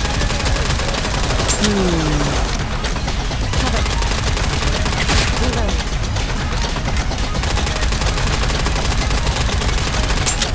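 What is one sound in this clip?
Rapid gunfire rattles continuously.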